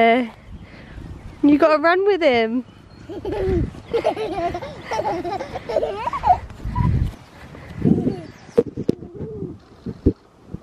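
A small child squeals and babbles close by.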